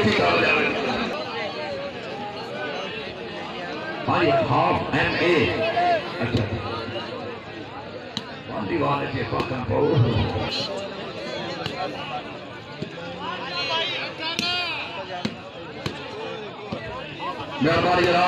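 A man shouts loudly over a loudspeaker.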